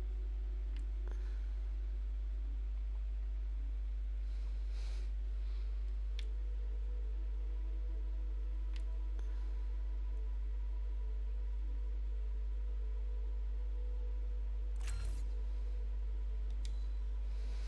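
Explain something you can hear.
A game menu gives short soft clicks as selections change.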